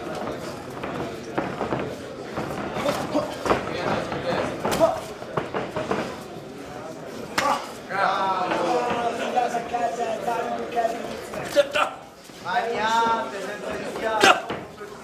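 Punches thud against boxing gloves and bodies.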